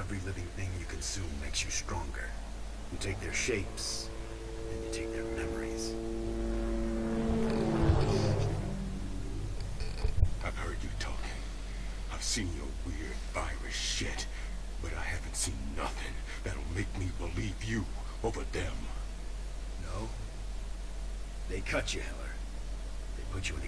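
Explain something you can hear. A man speaks in a low, calm voice.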